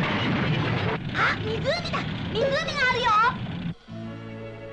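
A young boy calls out excitedly.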